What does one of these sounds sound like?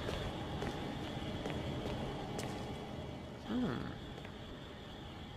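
Footsteps tap on a hard floor in an echoing space.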